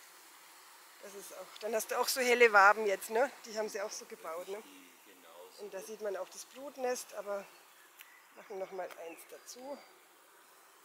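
A man speaks calmly nearby, outdoors.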